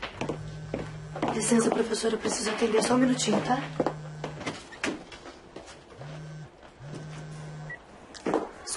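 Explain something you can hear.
A mobile phone buzzes in short bursts.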